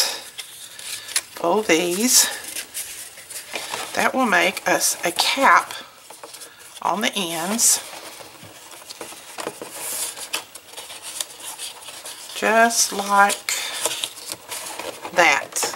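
Stiff paper rustles and slides as it is folded.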